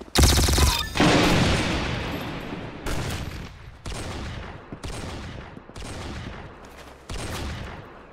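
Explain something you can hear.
A heavy rifle fires single loud shots that ring out and fade.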